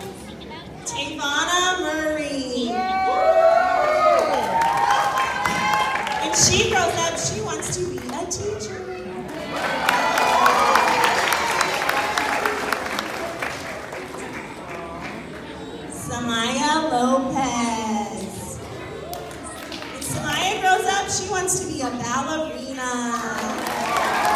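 A woman speaks into a microphone over a loudspeaker in a large echoing hall.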